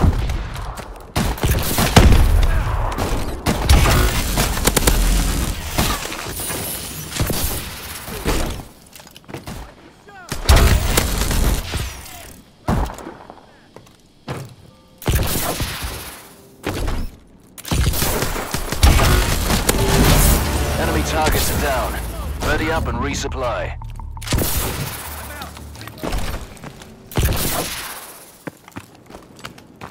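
Gunfire rattles in loud, quick bursts.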